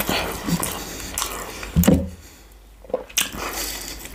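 Crispy fried chicken crunches as a man bites into it.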